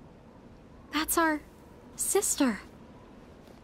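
A young woman speaks in surprise.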